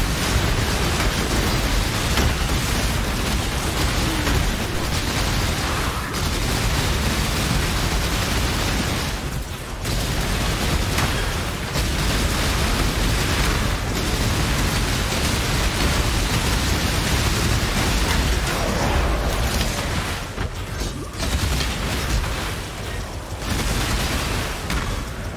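Magic spells crackle and blast in rapid bursts.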